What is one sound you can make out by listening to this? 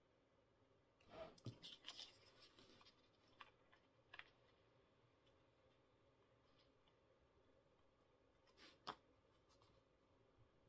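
Paper rustles and crinkles as hands fold and handle it.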